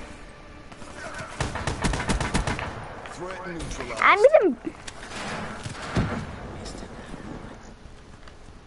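Rapid gunfire rattles and echoes.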